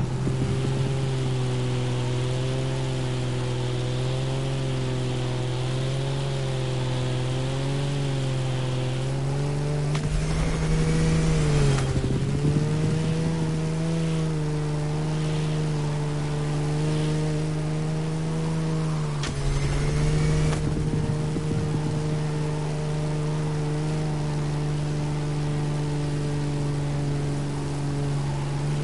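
A propeller engine drones steadily, its pitch wavering slightly.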